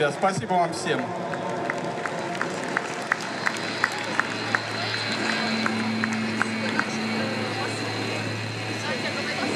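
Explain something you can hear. A band plays live music over loudspeakers, echoing outdoors.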